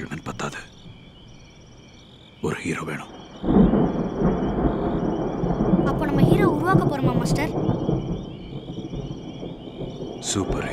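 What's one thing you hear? A middle-aged man speaks in a low, tense voice close by.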